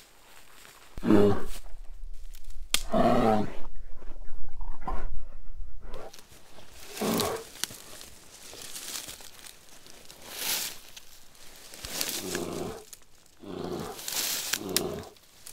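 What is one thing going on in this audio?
A man speaks quietly and tensely, close by.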